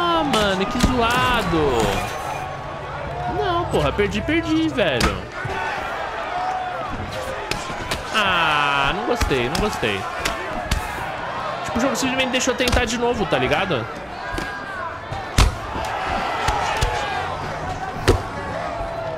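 Punches and kicks thud in a fighting game.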